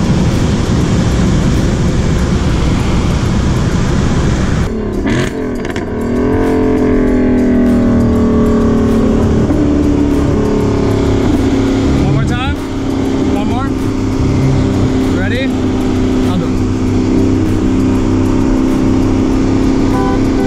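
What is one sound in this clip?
A car engine roars loudly as the car accelerates hard.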